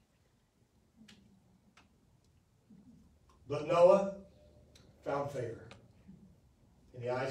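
A man speaks slowly and with emphasis into a microphone.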